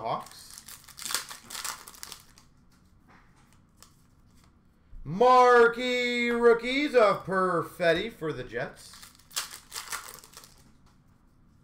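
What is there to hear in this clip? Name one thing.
A plastic card wrapper crinkles and rustles.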